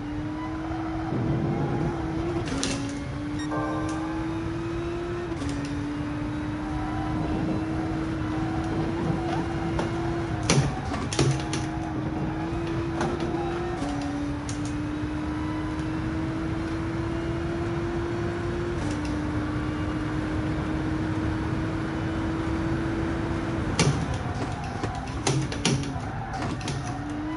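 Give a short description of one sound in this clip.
A racing car engine drones steadily, its pitch climbing and dropping back with each gear change.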